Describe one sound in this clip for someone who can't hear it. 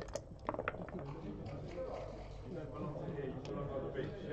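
Dice clatter and roll across a board.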